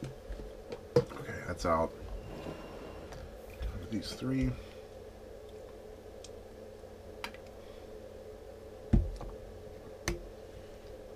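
Glass bottles clink against a table.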